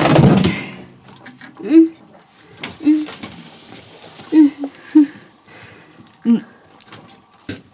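Metal parts clink and knock as a man works on an engine.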